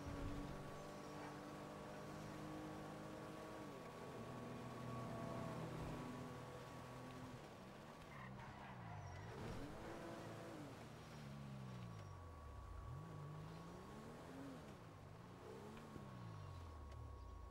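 A car engine hums and revs up and down as the car drives along.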